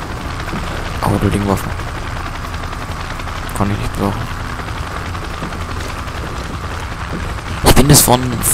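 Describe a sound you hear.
A man speaks briskly over a radio.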